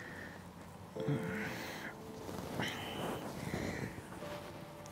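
A young man speaks softly up close.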